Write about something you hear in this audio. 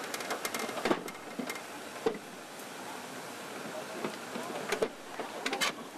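Metal objects clank and knock in a truck bed.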